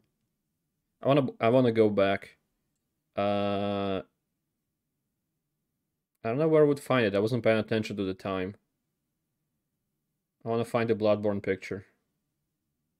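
A young man speaks calmly into a close microphone, in short bursts.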